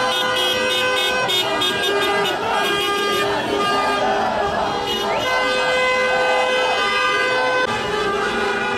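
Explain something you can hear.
A crowd of young men cheers and shouts nearby.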